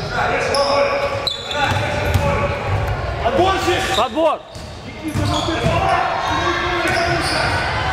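Young men shout across a large echoing hall.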